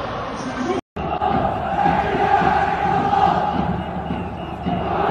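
A large crowd roars in a stadium, heard from high above.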